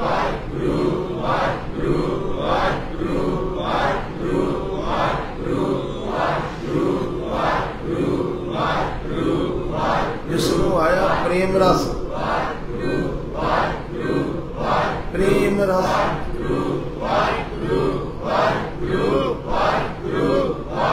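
An elderly man speaks steadily into a microphone, heard through a loudspeaker in an echoing room.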